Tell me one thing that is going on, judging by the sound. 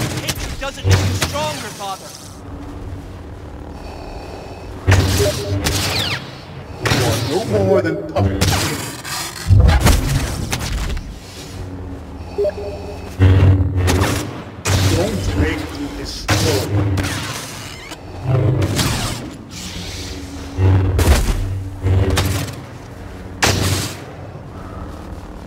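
Lightsaber blades clash and crackle.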